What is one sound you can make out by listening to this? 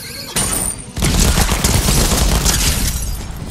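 A loud magical blast bursts and crackles.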